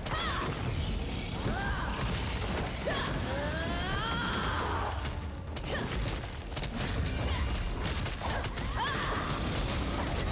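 Magic blasts crackle and boom in rapid bursts.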